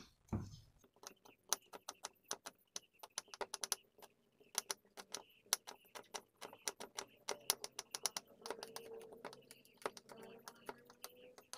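A knife chops quickly on a wooden board.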